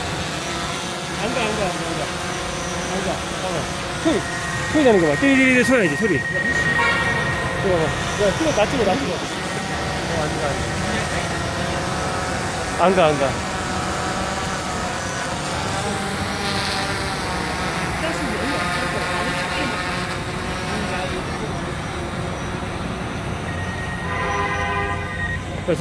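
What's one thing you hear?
A drone's propellers whine steadily overhead.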